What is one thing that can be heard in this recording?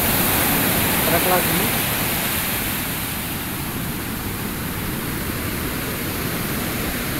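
Breaking surf roars and washes up a sand beach.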